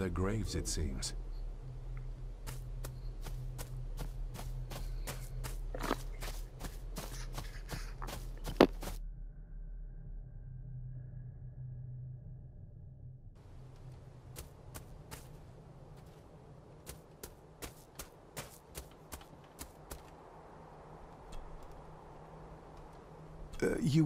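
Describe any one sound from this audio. Footsteps crunch quickly on a gravel path.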